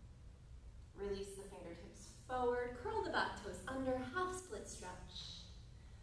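A woman speaks calmly, as if giving instructions.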